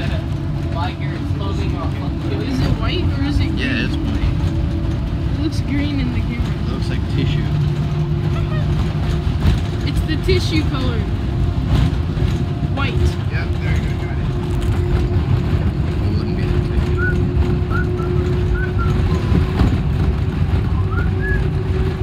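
A teenage boy talks casually close by.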